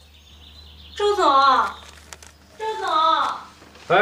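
A middle-aged woman calls out loudly, twice, close by.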